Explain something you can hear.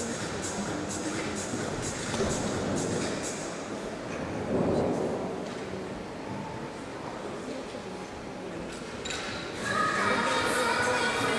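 Spectators murmur in a large echoing hall.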